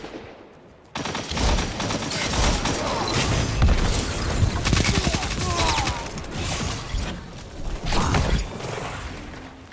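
Rapid gunfire rattles close by.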